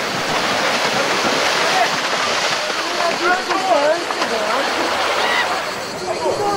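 Horses splash loudly through shallow water.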